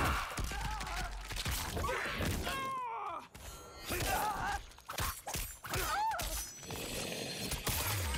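Bones crunch and flesh squelches.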